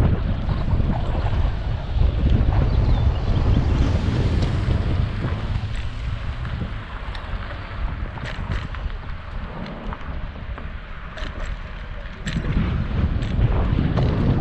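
Wind rumbles loudly against a moving microphone.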